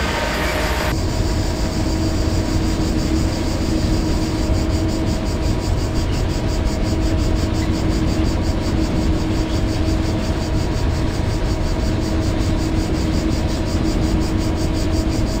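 A train rumbles steadily from inside the driver's cab, with a low hum.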